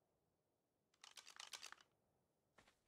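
A paper map rustles open.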